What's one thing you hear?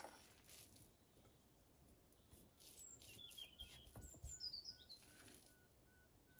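A fork scrapes and taps against a bowl.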